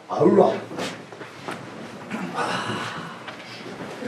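Chairs creak and shuffle as people sit down.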